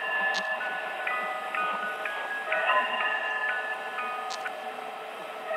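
A music box plays a tinkling tune.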